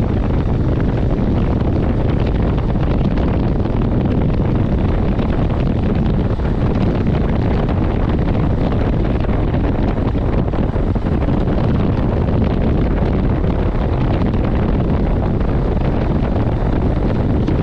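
Wind rushes loudly past a motorcycle rider outdoors.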